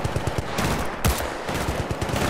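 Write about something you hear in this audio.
A rifle fires a single loud shot.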